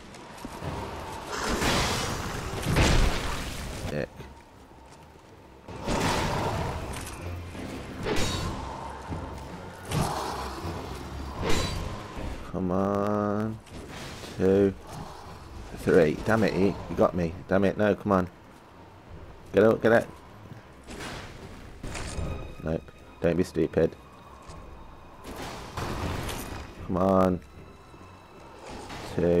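Heavy blades whoosh through the air.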